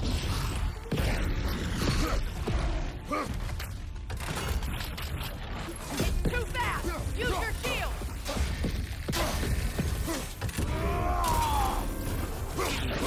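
A beast growls and roars.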